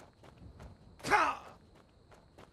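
A heavy body thuds hard onto rocky ground.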